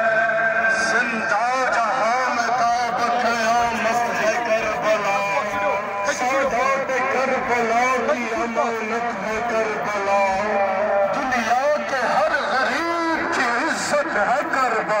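A crowd of men chants together outdoors.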